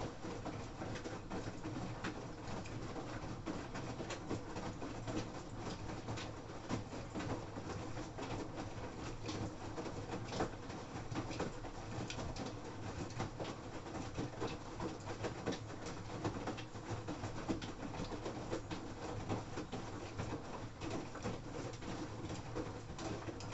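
Wet laundry sloshes and thumps inside a washing machine drum.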